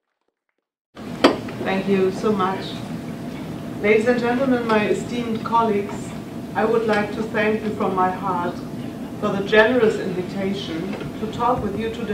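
A middle-aged woman speaks calmly through a microphone in a large room.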